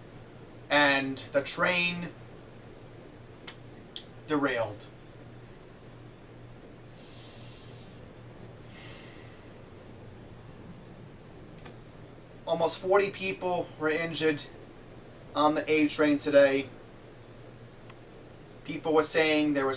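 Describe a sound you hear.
A young man speaks to the microphone close by, in short bursts with pauses.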